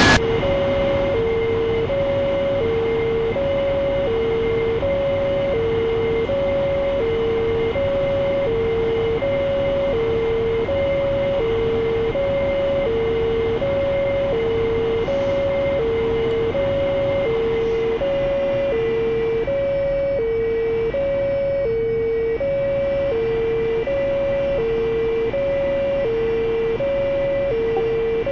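A jet engine roars steadily in flight.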